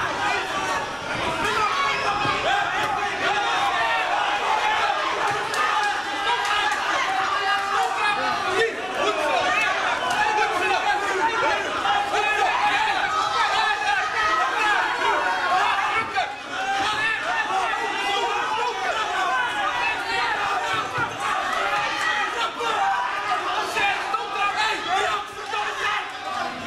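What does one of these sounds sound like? A crowd of spectators shouts and chatters in an indoor hall.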